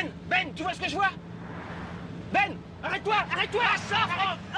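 A young man talks with animation inside a car.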